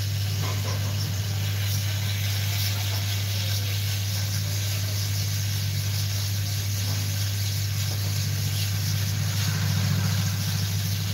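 A hot air gun blows with a steady rushing hum.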